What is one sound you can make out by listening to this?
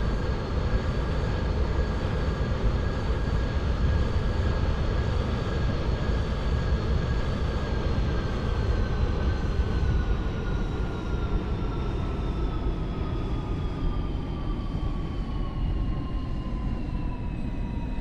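Train wheels rumble along the rails.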